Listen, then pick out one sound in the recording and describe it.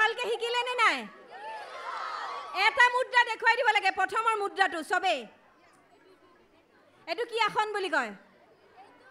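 A woman sings loudly into a microphone, heard through loudspeakers.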